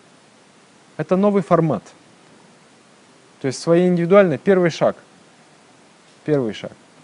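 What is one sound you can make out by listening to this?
A man speaks calmly and slowly into a close microphone, with pauses between phrases.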